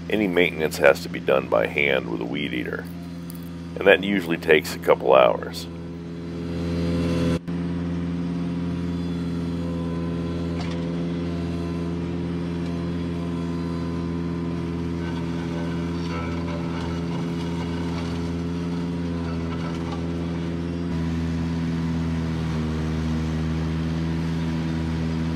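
A mower engine hums steadily close by.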